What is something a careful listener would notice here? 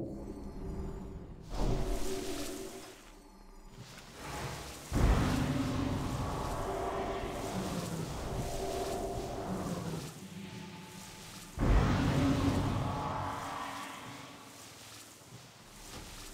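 Magic spells burst and crackle in a fantasy battle.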